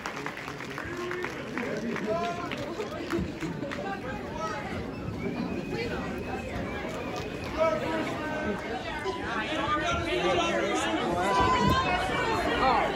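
A crowd of men and women talk over each other loudly indoors.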